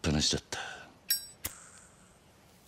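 A lighter clicks and flares.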